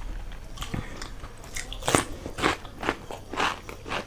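Crisp cucumber crunches as a young woman bites into it.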